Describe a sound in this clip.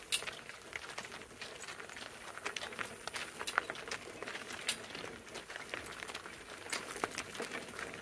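Harness chains jingle and rattle.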